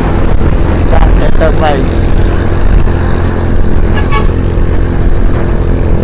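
A 125cc scooter engine drones while riding at speed.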